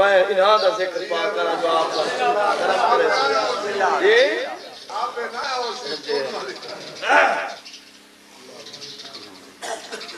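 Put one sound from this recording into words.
A man speaks passionately into a microphone, his voice carried through loudspeakers.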